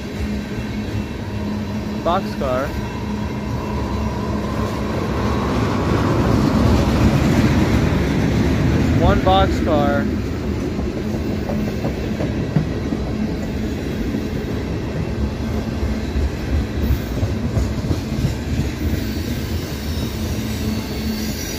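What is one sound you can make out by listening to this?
A freight train rolls past close by with a deep, steady rumble.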